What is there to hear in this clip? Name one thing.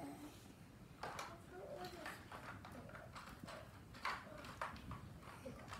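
Paper crinkles and rustles in a child's hands.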